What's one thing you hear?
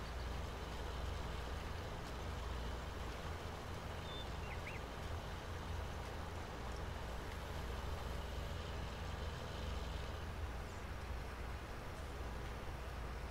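A cultivator scrapes through loose soil.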